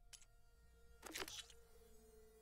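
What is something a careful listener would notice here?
A soft game menu whoosh sounds as the menu switches.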